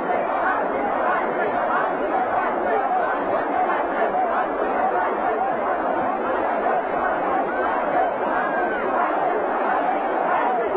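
A large crowd sings and cheers loudly.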